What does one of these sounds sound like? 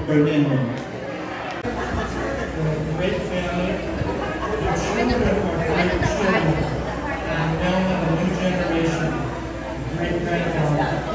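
A man speaks into a microphone over loudspeakers in a large echoing room.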